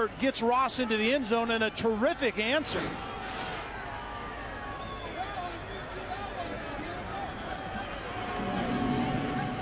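A large stadium crowd cheers and roars in the distance.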